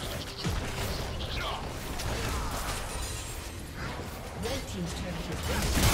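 Magic spells whoosh and crackle in a fast fantasy battle.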